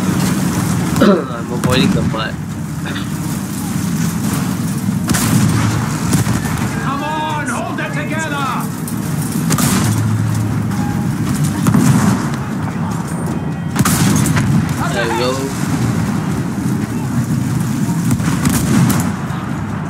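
Explosions boom nearby, again and again.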